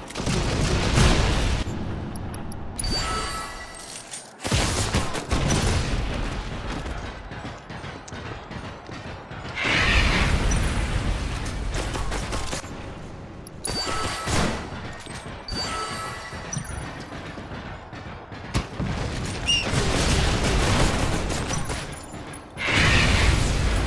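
Magical blasts whoosh and zap.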